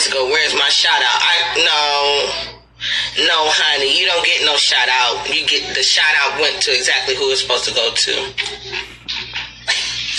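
A woman talks with animation close to a phone's microphone.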